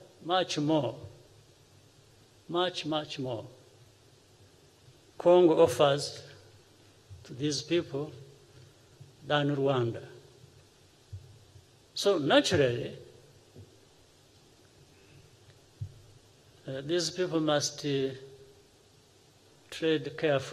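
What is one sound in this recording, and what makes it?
A man speaks calmly and slowly into a microphone, with long pauses between phrases.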